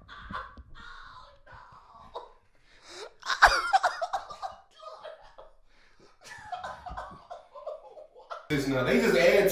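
Several men laugh heartily into microphones.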